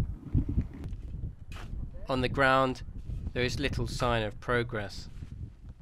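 A shovel scrapes and digs into dry dirt.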